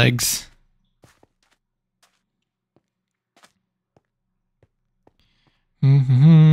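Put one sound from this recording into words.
Footsteps tread softly on sand and stone.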